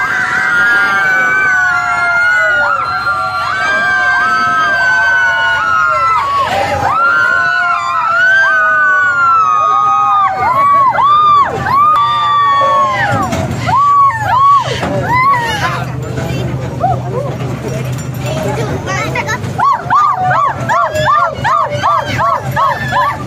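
A group of young people sing and shout loudly close by.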